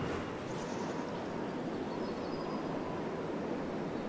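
An eagle glides with wind rushing past.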